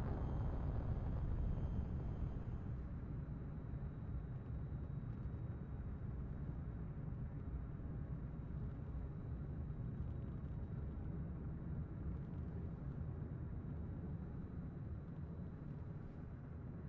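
A rocket engine roars steadily as a rocket lifts off and climbs.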